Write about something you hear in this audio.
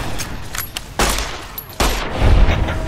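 A pistol fires loud, sharp shots.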